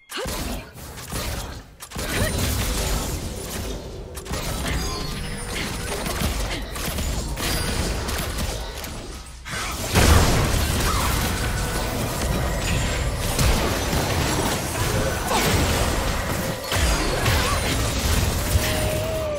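Swords and blows clash rapidly as game characters fight.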